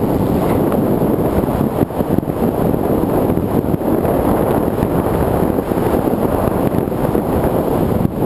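Wind rushes and buffets loudly outdoors.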